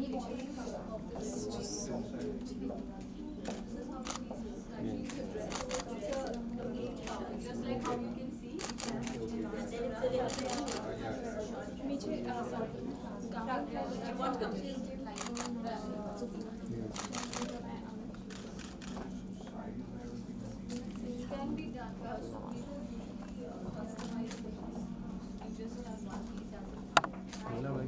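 A crowd of men and women chatters nearby in a room.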